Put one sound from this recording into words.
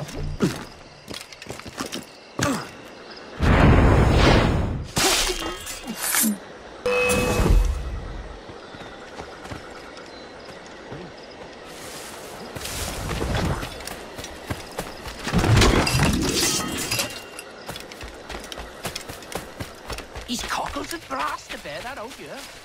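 Footsteps rustle quickly through leaves and grass.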